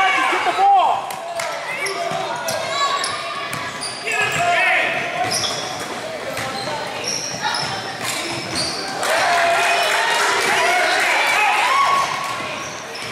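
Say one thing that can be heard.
Spectators cheer and shout from the sidelines.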